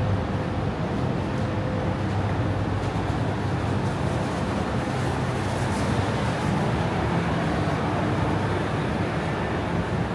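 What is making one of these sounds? Footsteps tap on pavement as a man walks ahead.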